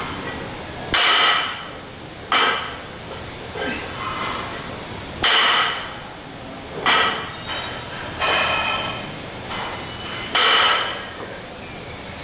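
A woman breathes out hard with each lift.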